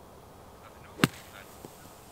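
A golf club strikes sand with a single sharp thud.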